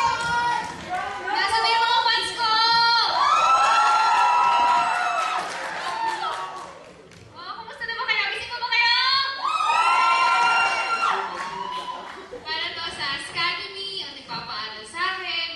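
A young woman sings a song into a microphone over loudspeakers in a large hall.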